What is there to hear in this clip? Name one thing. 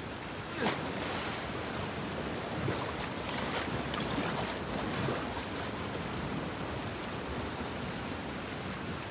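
Water churns and sloshes around a swimmer.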